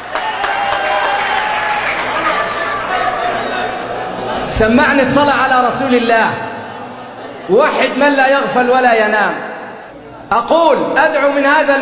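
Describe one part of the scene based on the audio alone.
A man preaches with animation through a microphone.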